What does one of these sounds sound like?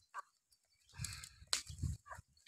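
A wicker basket rattles and scrapes.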